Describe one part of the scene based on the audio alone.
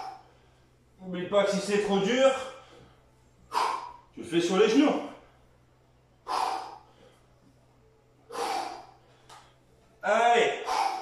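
A man talks between breaths, a little out of breath.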